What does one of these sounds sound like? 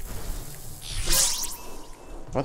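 A burst of flame whooshes up.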